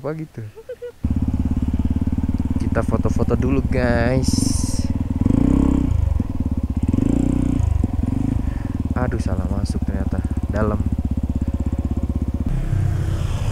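A motorcycle engine runs with a steady, rattling idle close by.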